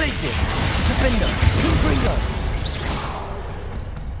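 Magic blasts crackle and roar with sizzling bursts.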